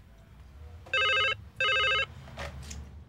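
A telephone rings twice with a shrill electronic tone.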